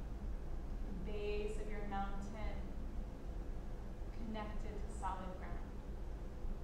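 A woman speaks slowly and calmly nearby.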